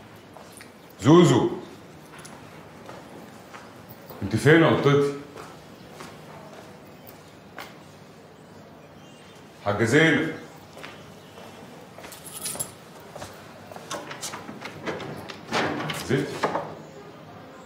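A middle-aged man calls out loudly in short bursts.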